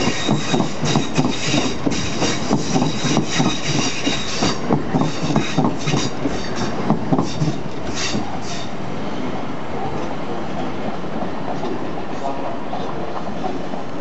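A train's wheels clatter over rail joints as it pulls away, fading into the distance.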